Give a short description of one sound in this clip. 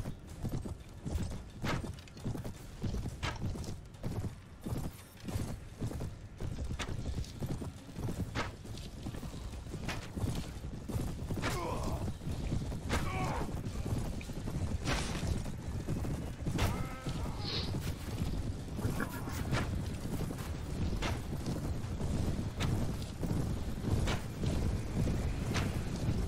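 Bowstrings twang as arrows are loosed, again and again.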